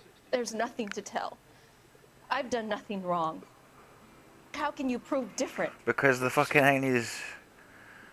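A young woman answers defensively, close by.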